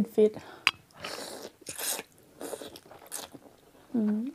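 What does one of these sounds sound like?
A woman slurps noodles loudly.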